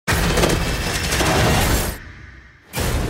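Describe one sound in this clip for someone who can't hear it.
A truck crashes through brush with a loud roar.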